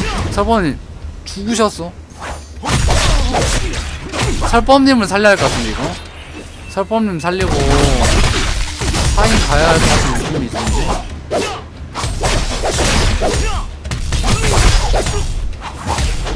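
Fast-paced fighting game sounds of blows and blasts ring out.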